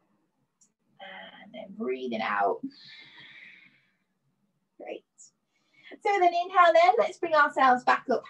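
A woman speaks calmly, giving instructions through a microphone on an online call.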